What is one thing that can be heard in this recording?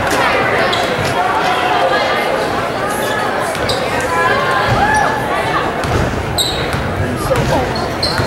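A crowd of spectators chatters and calls out throughout a large echoing gym.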